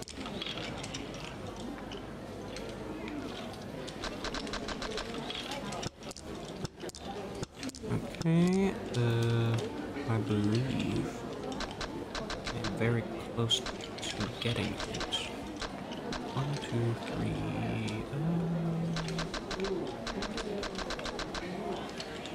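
Game tiles clack down on a table now and then.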